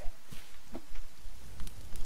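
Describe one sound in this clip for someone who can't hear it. A fire flares up and crackles.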